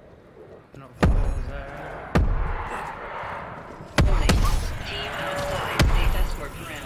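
A gun fires in sharp single shots.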